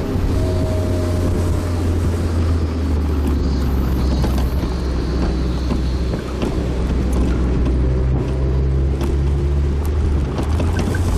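Wind rushes loudly past an open-top car.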